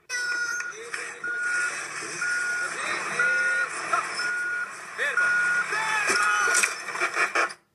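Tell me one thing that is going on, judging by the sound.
A heavy machine beeps in a steady, repeating pattern.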